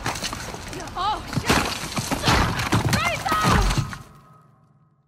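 A man shouts in alarm.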